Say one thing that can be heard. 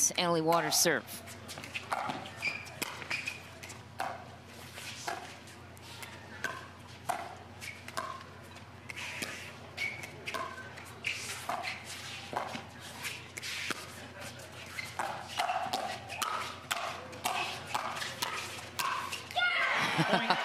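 Paddles pop sharply against a plastic ball in a quick back-and-forth rally.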